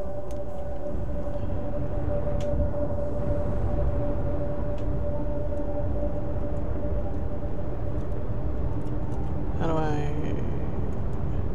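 A spaceship's engines rumble with a steady, low drone.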